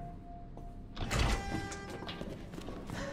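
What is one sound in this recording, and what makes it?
A metal door creaks open.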